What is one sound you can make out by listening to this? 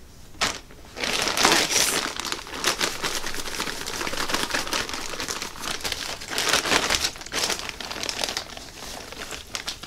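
A plastic bag crinkles and rustles up close.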